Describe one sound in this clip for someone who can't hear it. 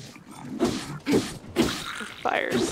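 An explosion bursts with a crackle.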